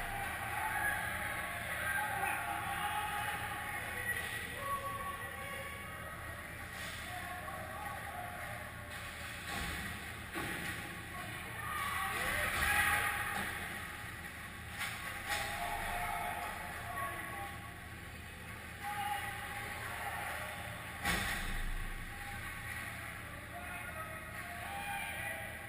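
Ice skates scrape and hiss on ice in a large echoing rink.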